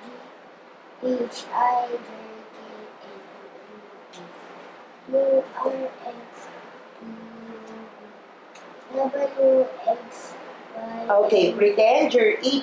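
A young boy speaks clearly into a nearby microphone, with pauses between phrases.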